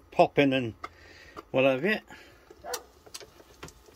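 A hinged lid on a small electric cooker creaks open.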